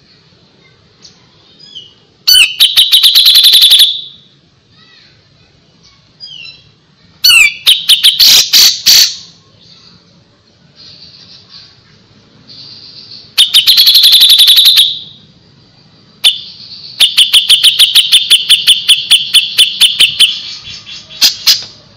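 A songbird sings loud, rapid bursts of chattering trills close by.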